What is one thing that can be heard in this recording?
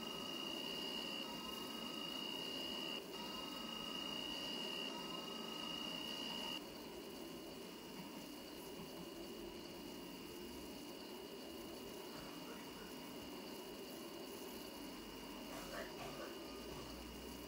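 A high steady whine of the train's motor sounds, then drops away.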